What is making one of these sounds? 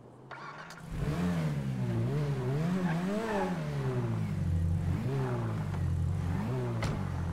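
A car engine starts and revs up and down.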